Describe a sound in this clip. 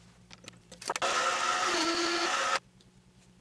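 A lathe motor whirs loudly, then stops.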